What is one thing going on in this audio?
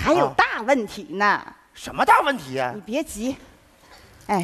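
A man speaks to a woman.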